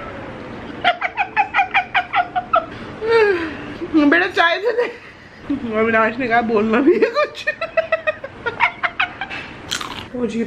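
A woman laughs hard and close by, in rapid bursts.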